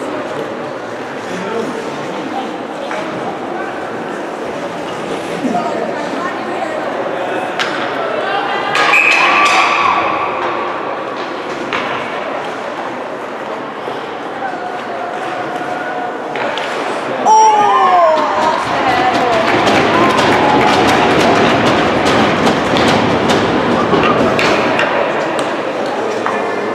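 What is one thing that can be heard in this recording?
Ice skates scrape and swish across an ice rink.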